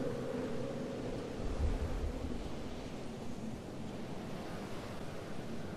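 Wind rushes steadily past during a glide.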